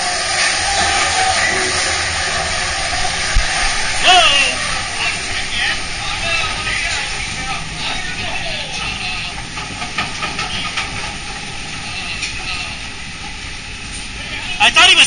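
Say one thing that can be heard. Machinery rumbles and hums steadily in a dark, echoing space.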